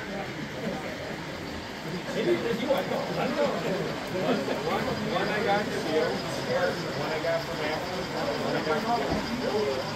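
Several men chat calmly at a table nearby in a room that echoes a little.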